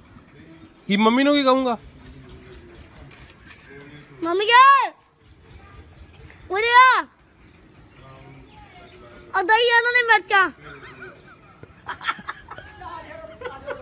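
A young boy wails and sobs loudly.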